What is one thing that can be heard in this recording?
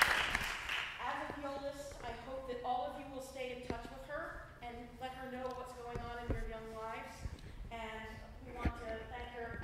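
A woman reads out in a hall.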